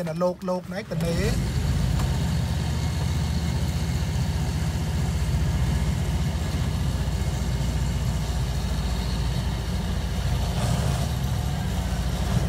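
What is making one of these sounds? A boat motor drones steadily close by.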